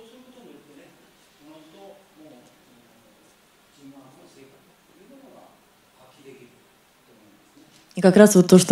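A woman speaks calmly through a microphone in a large, echoing hall.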